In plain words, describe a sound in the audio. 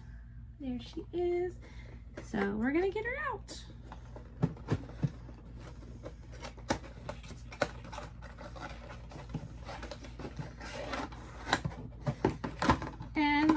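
Plastic packaging crinkles and clicks in a woman's hands.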